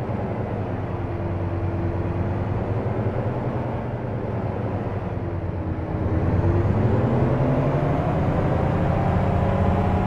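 A truck engine rumbles low and steady, then revs higher.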